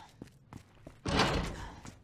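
A door is pushed open.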